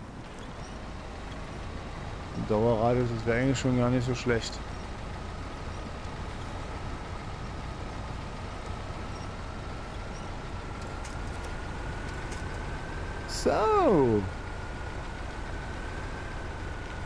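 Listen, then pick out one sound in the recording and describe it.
A truck engine hums steadily while driving slowly.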